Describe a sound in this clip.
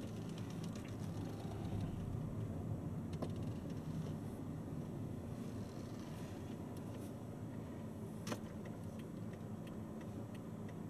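A car engine hums low and steady from inside a moving car.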